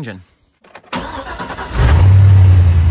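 A car engine starts up.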